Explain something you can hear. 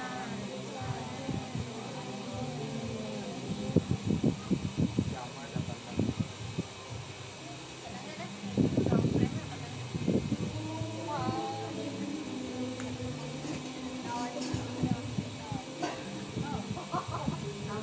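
Several people talk quietly nearby.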